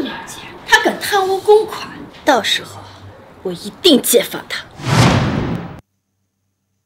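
A man speaks with surprise, close by.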